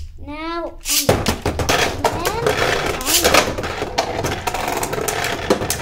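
Spinning tops whir and clatter against each other in a plastic arena.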